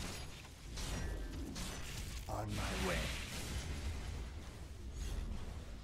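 Magic spells whoosh and crackle during a fight.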